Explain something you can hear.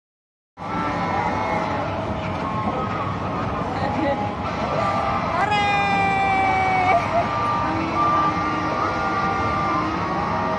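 Arcade machines beep and chime all around in a noisy hall.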